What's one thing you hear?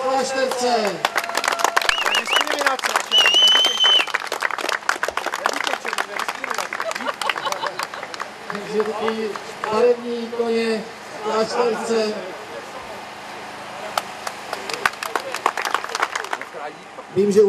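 A crowd claps and applauds outdoors.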